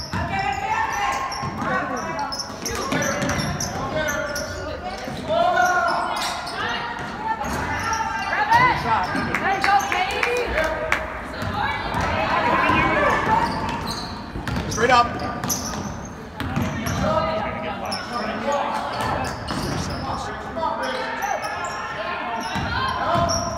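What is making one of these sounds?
A crowd of spectators talks and cheers, echoing in a large hall.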